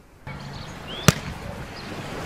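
A ball thuds onto sand.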